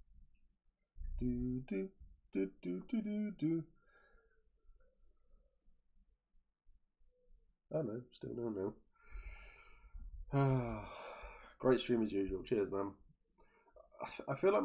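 A middle-aged man talks calmly and close into a microphone, with pauses.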